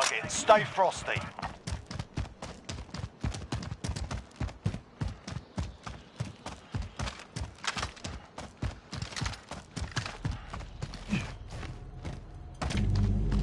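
Quick footsteps thud while running.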